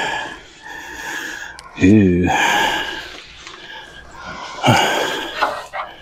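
Crumbly rotten wood breaks apart in gloved hands.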